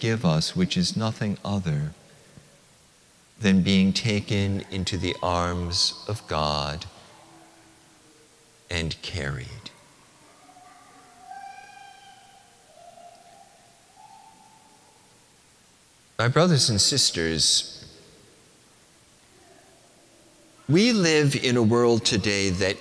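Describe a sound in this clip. An older man chants through a microphone in a large echoing hall.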